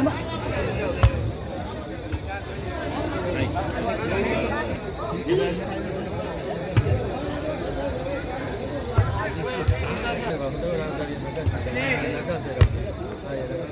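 A ball is struck with sharp thumps.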